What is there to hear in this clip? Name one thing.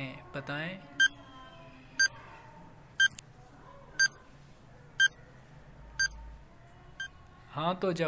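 A timer beeps once every second, counting down.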